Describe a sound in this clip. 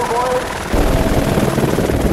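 A helicopter rotor thumps overhead.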